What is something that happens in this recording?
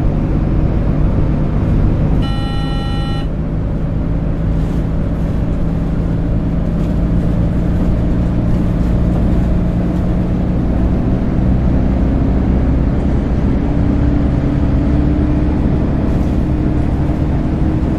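A bus engine hums steadily and slowly rises in pitch as the bus speeds up.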